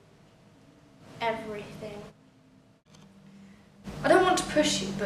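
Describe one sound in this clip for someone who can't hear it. A second young woman answers calmly.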